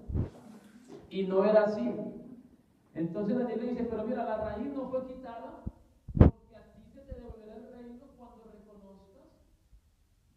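A man preaches with animation through a microphone and loudspeakers in an echoing hall.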